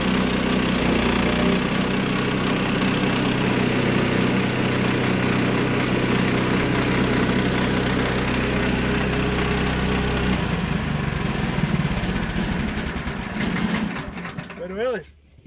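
A sawmill engine runs with a loud steady drone.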